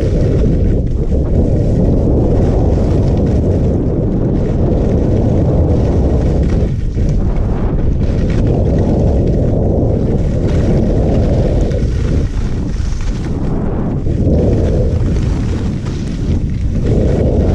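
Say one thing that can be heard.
Wind rushes loudly past, buffeting throughout.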